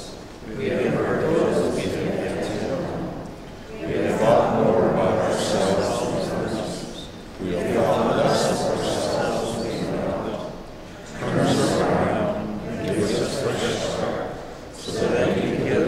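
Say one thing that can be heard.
A crowd of men and women recite together in phrases in a large echoing hall.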